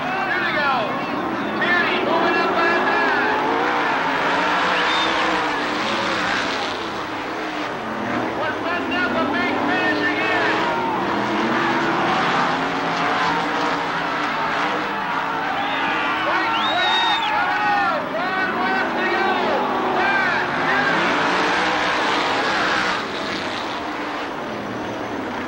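Racing car engines roar loudly.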